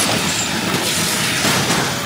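A car's nitro boost whooshes.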